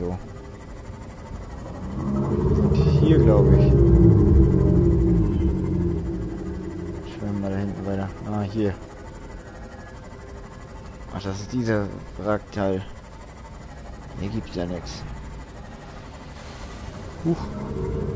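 A small submarine's engine hums and churns underwater.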